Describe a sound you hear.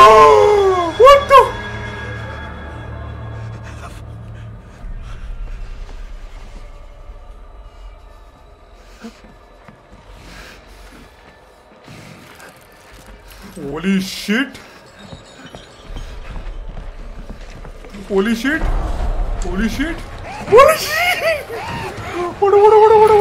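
A man talks and exclaims with animation into a close microphone.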